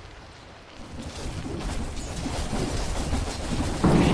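Weapons clash and thud in a fantasy battle.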